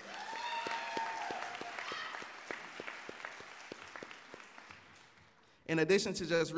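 An audience claps and applauds in an echoing hall, fading out.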